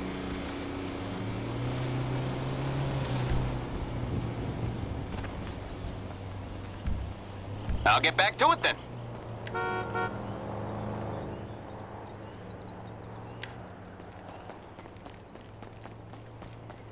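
Footsteps crunch on a dirt and tarmac roadside.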